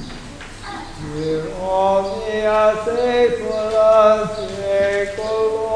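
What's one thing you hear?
A man chants a slow melody in a large echoing hall.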